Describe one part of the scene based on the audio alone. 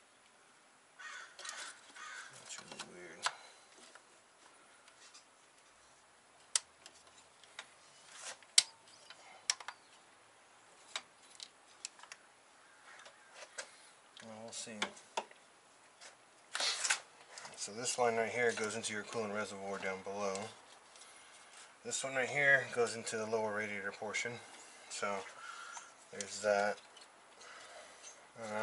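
Metal tools click and clank against engine parts.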